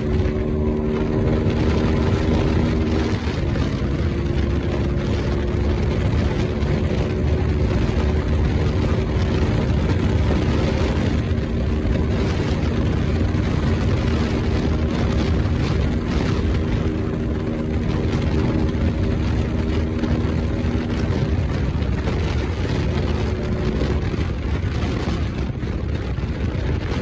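A motorcycle engine roars steadily at high speed, its pitch rising and falling.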